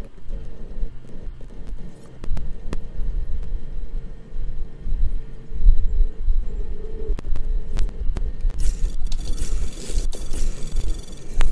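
Short electronic blips sound as menu selections change.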